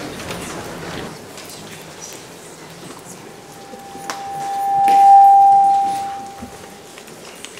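A seated audience murmurs quietly in a large hall.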